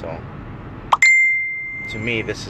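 A short electronic chime rings once.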